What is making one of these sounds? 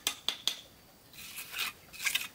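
A trowel scrapes over bricks and mortar.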